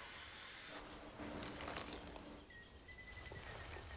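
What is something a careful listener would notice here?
Footsteps rustle through dense undergrowth.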